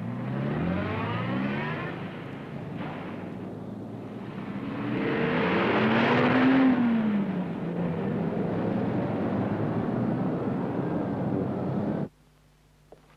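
Car engines rumble and traffic roars past on a busy street.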